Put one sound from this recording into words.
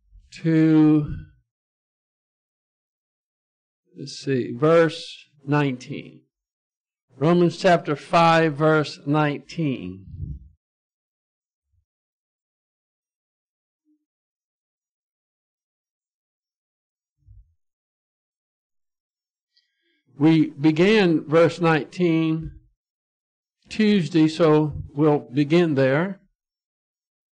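An elderly man speaks calmly into a microphone, with long pauses.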